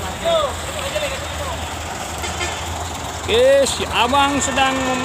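A truck engine idles with a low steady rumble.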